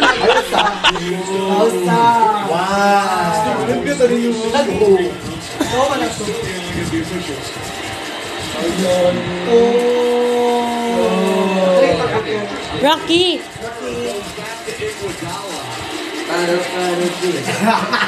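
A young man laughs loudly and shouts nearby.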